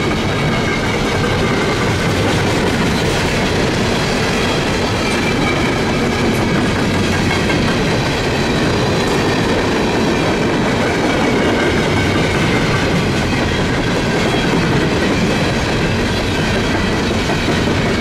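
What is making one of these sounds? A long freight train rumbles past close by, its wheels clanking and squealing on the rails.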